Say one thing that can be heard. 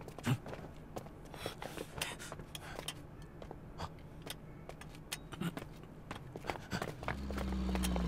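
Footsteps scuffle quickly on a hard floor.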